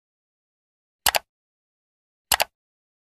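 A mouse button clicks twice.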